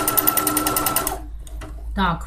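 A sewing machine stitches with a rapid, steady whir.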